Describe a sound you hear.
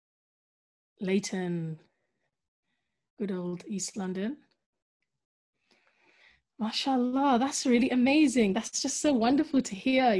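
A woman speaks calmly and close up, heard through a microphone.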